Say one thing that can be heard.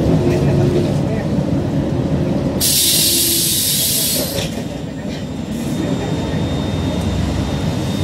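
Traffic drives past on a busy road.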